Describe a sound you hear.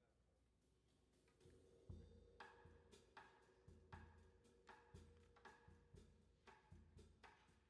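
A band starts playing music with a steady beat.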